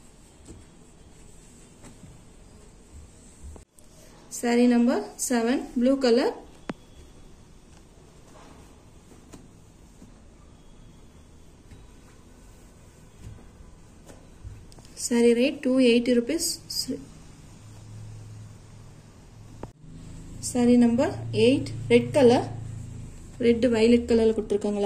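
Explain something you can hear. Cloth rustles softly as hands handle and fold it.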